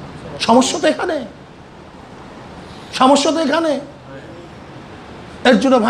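A man speaks through a microphone in short phrases with pauses between them.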